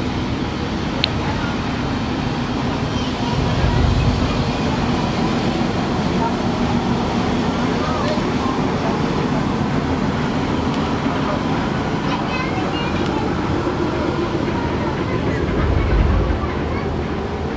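Water splashes and churns against a ship's hull.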